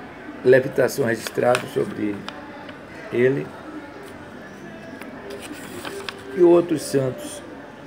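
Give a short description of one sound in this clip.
Paper pages of a book rustle as they are turned.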